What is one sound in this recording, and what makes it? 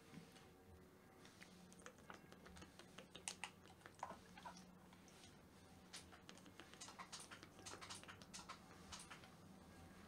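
A young man gulps water from a plastic bottle.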